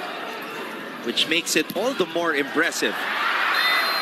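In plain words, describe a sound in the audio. A volleyball is spiked and smacks the floor.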